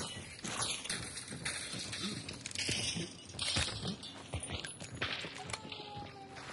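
Gunshots ring out nearby.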